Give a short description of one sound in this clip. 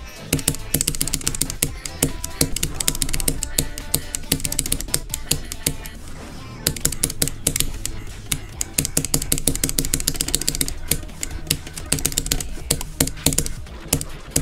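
Fast electronic dance music with a pounding beat plays throughout.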